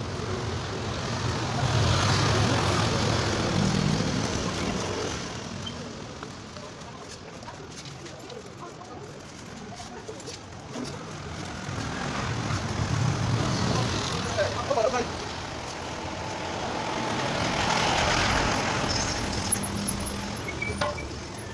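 Vehicles drive past on a street, swelling and fading.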